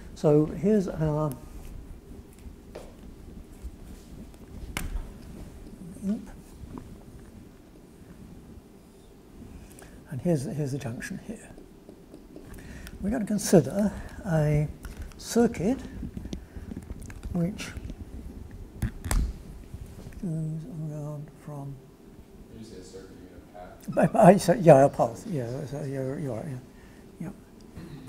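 An elderly man lectures calmly.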